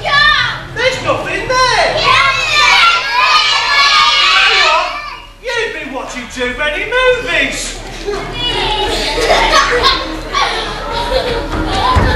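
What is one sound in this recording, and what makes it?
A man sings loudly and theatrically, heard from some distance in an echoing hall.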